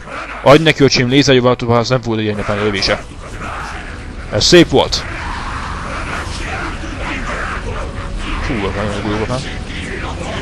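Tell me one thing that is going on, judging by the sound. A young man speaks with animation, close to a headset microphone.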